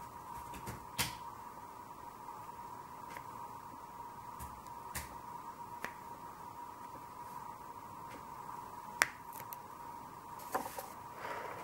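Pastel sticks clink together as they are picked up.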